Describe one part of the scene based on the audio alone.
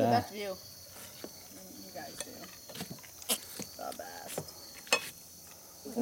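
Forks and utensils click against plates.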